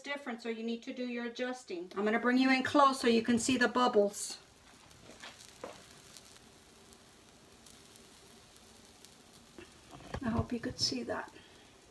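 Pancake batter sizzles softly in a hot frying pan.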